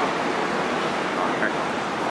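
A man strums a guitar.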